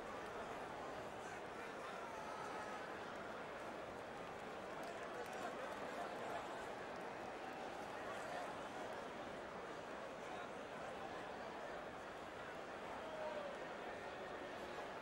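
A large crowd roars steadily in an echoing arena.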